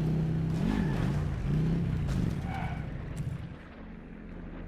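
A motorbike engine revs up and down loudly.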